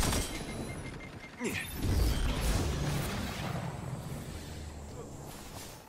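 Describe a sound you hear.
Loud weapon blasts boom and crackle in quick bursts.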